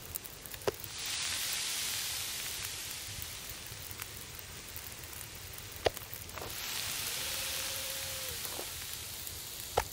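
Meat sizzles loudly on a grill over a fire.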